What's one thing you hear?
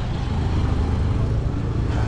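A motorcycle engine hums on a street nearby.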